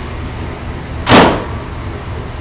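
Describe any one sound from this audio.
A car hood slams shut with a heavy thud.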